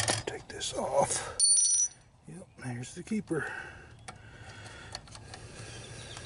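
Plastic parts click and rattle as a hand handles an engine cap.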